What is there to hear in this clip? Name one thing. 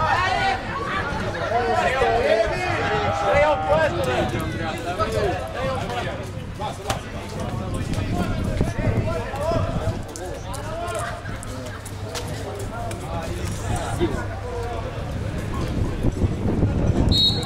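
Men talk and call out nearby, outdoors.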